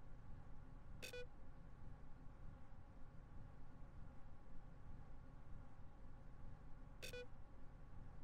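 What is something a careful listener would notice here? A computer terminal gives a short electronic beep.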